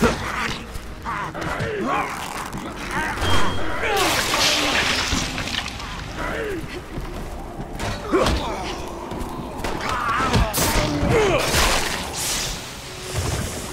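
A creature groans and snarls close by.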